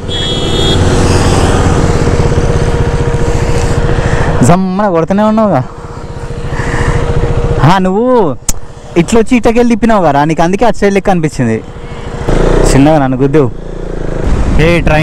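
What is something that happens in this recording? A motorcycle engine idles with a low rumble.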